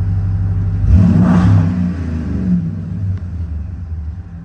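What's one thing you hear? A car engine revs up sharply and then settles back down.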